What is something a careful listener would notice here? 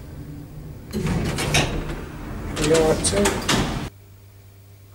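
Elevator doors slide open with a rumble.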